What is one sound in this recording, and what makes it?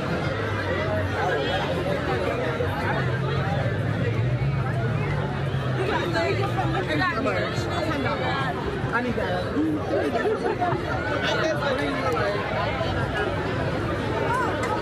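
A crowd of people talks and shouts excitedly outdoors.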